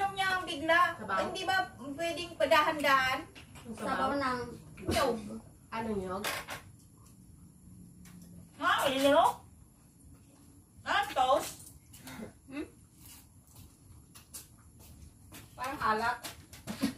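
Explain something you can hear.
Young women talk and laugh nearby.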